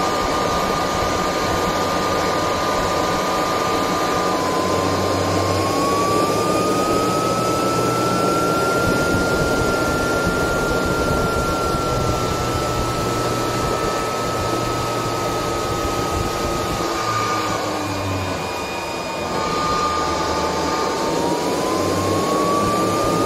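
A blower roars loudly and steadily with a rising and falling whine.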